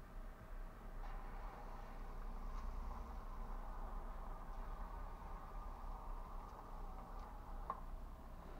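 A car drives past close by and fades away.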